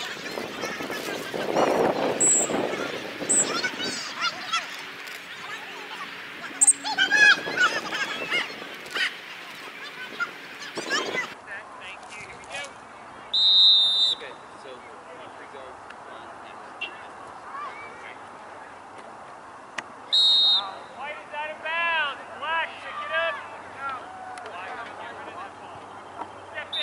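Young men shout across an outdoor playing field.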